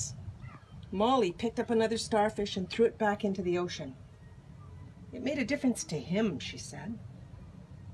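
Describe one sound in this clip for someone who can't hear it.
An elderly woman reads aloud calmly, close by.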